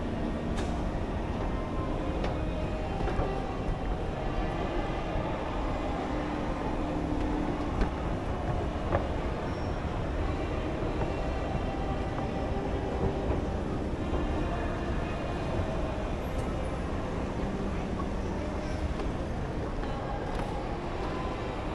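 An escalator hums and rumbles steadily in a large echoing hall.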